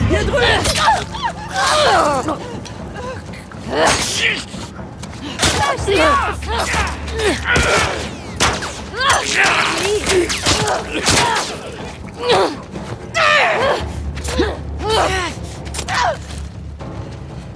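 Blows thud in a fierce struggle.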